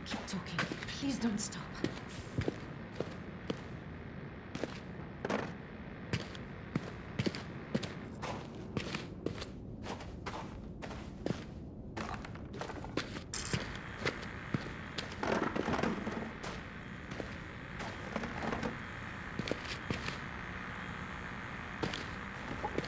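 Footsteps thud steadily across a wooden floor.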